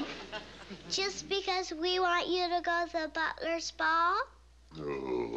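A young girl speaks in a high, clear voice.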